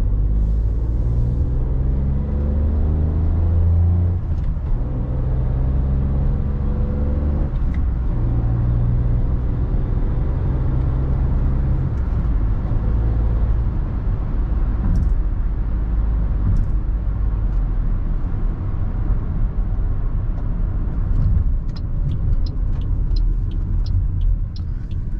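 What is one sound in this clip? A small car engine hums inside the cabin, rising in pitch as it speeds up and dropping at each gear change.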